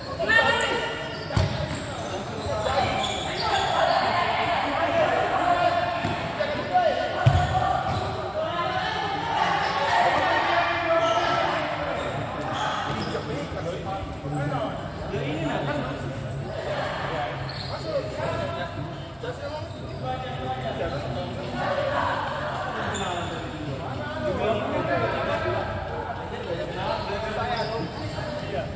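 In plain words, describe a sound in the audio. Young players shout and call out to each other in a large echoing hall.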